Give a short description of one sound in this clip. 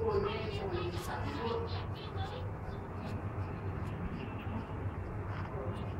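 Hands rustle and fluff through long hair close by.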